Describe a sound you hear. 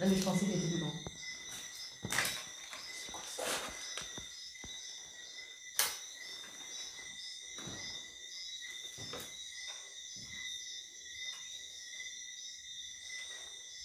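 Footsteps crunch over scattered debris on a hard floor.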